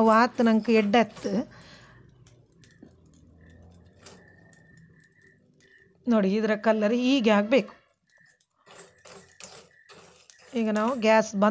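A metal spoon scrapes and stirs dry rice in a metal pan.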